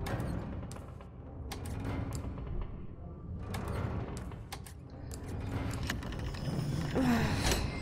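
Wooden tiles slide and click into place.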